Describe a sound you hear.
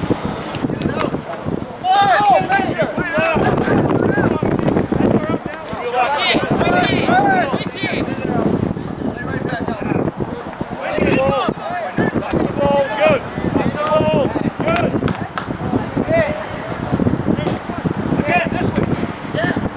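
Young players shout and call to one another across an open field outdoors.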